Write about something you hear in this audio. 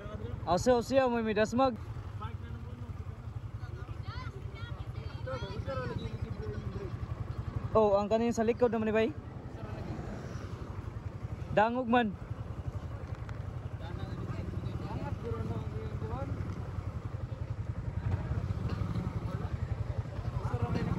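A motorcycle engine idles with a steady low rumble.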